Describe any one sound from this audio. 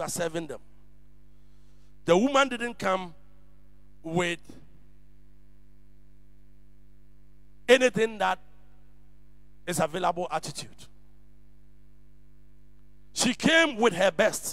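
An older man preaches with emphasis into a microphone over a loudspeaker, in short bursts with pauses.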